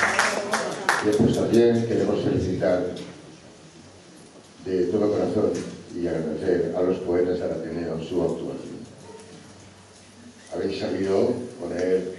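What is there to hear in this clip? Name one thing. An elderly man speaks calmly into a microphone, heard over loudspeakers.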